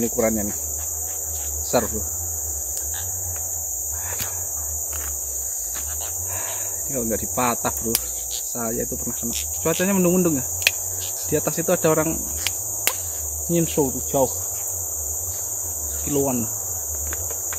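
A young man speaks calmly close by, in short bursts.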